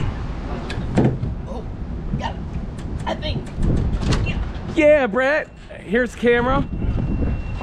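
Shoes clank on metal ladder rungs.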